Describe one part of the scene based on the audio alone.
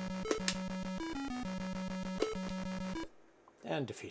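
A chiptune melody plays in short bleeping notes.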